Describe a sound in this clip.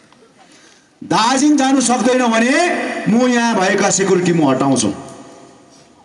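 A man speaks loudly and forcefully into a microphone, heard through loudspeakers outdoors.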